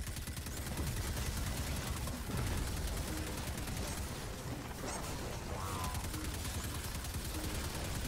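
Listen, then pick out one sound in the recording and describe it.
Electric energy blasts crackle and fizz in a video game.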